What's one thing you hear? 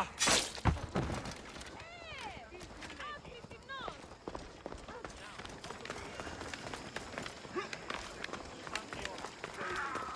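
Footsteps run quickly over stone.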